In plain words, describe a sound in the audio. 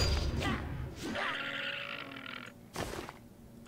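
A deer cries out as it is struck.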